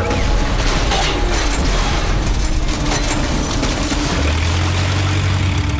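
Debris clatters.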